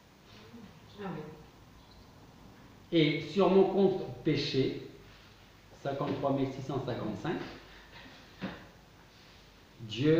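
A middle-aged man speaks calmly and with pauses, close by.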